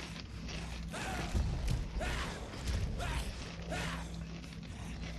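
A man talks into a close microphone in a relaxed voice.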